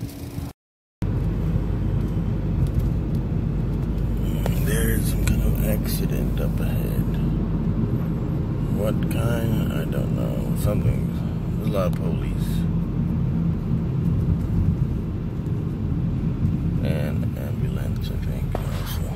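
A car engine hums steadily with road noise while driving.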